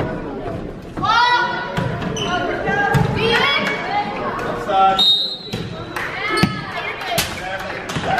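Spectators cheer and shout loudly in an echoing gym.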